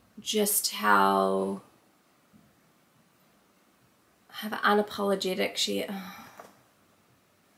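A young woman speaks expressively and close to the microphone, her voice rising in pitch.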